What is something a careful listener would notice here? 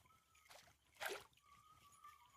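A fishing lure splashes into water.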